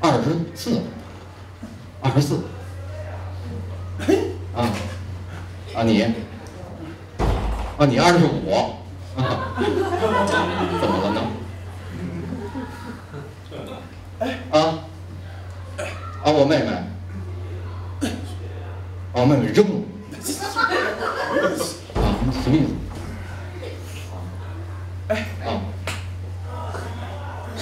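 A middle-aged man talks with animation through a microphone.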